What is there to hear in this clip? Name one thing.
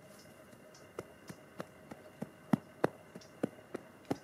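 Gloved hands pat and press down soil.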